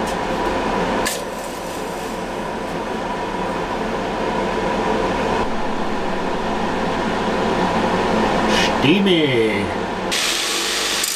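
A power drill whirs as a wire brush churns through water.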